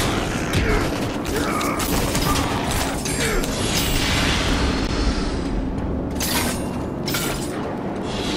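Blades whoosh and strike in a fast fight with loud impacts.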